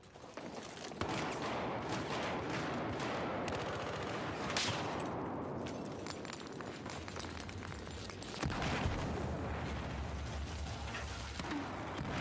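Footsteps thud on a hard floor in a large echoing hall.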